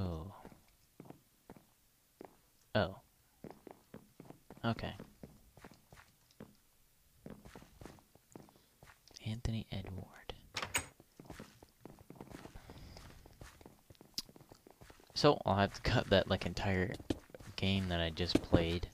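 Footsteps tap quickly across a hard floor.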